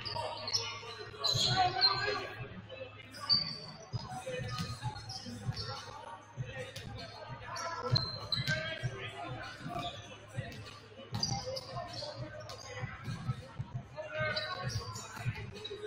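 Young men shout and call to each other in a large echoing gym.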